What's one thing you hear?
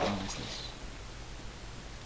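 A zombie groans low and hoarsely.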